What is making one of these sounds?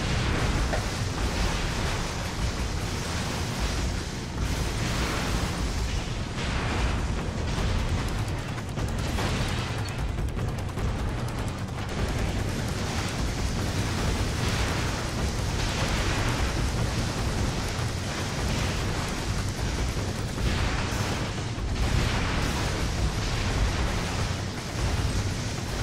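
Explosions boom and rumble in a video game.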